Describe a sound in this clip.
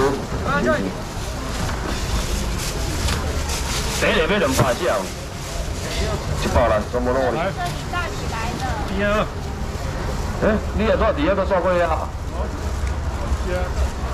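Several men talk over one another nearby in a busy outdoor crowd.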